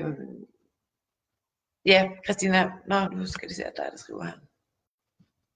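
A woman speaks calmly into a microphone, close by.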